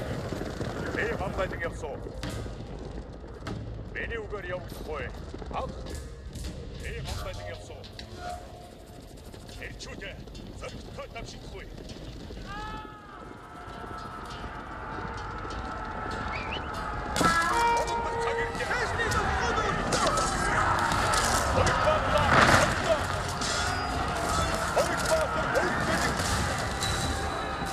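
A large group of armoured soldiers marches with clanking and thudding footsteps.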